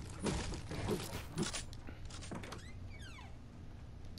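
Building pieces clack into place.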